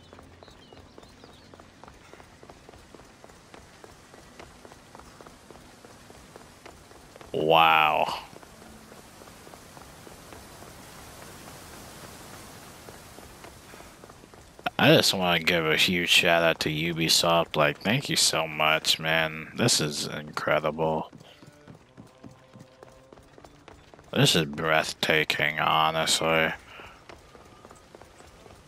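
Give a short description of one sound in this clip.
Quick footsteps patter on stone.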